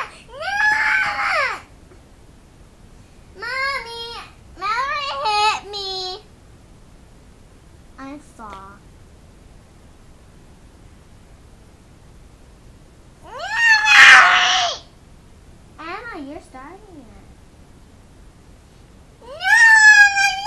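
A small child squeals loudly and babbles close by.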